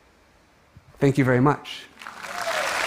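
A man speaks briefly into a microphone in a large hall.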